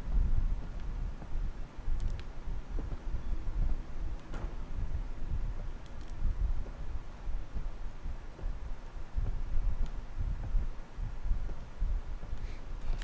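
Heavy footsteps thud slowly across a wooden floor.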